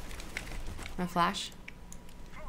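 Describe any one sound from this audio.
A young woman speaks briefly and casually into a microphone.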